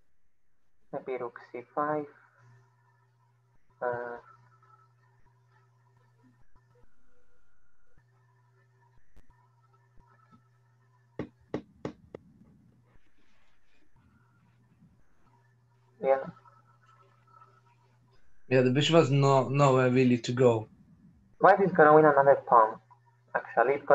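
A boy speaks calmly through an online call, in short bursts.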